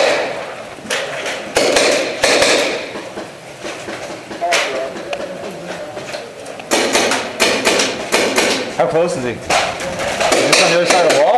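Paintball guns fire in rapid bursts, echoing in a hollow room.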